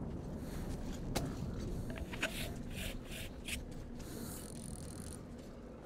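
Footsteps crunch on a gritty floor.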